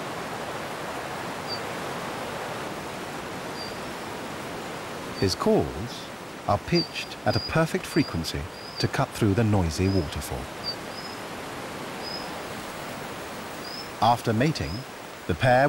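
A shallow stream rushes over rocks.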